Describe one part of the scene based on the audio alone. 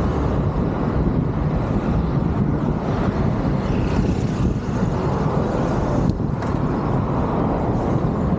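Wind blows hard across a microphone outdoors.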